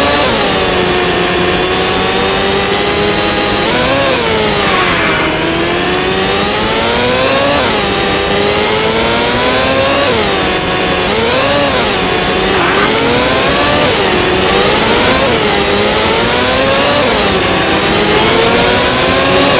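A racing car engine whines loudly, rising in pitch as it speeds up and dropping sharply with each gear change or braking.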